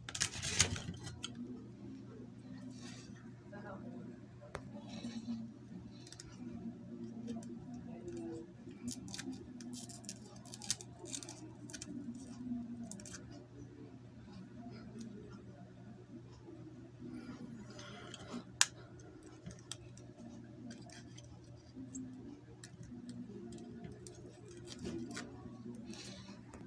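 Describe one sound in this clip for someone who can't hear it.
Stiff wires rustle and tap as they are handled.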